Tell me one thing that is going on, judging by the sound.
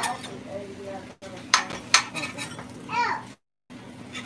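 A metal spatula scrapes and taps in a frying pan.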